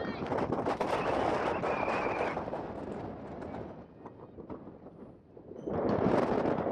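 Spectators and players shout and cheer outdoors at a distance.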